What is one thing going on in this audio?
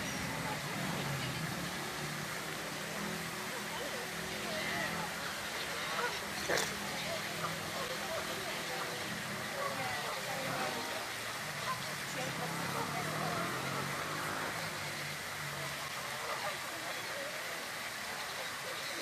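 Fountain jets splash into a pond.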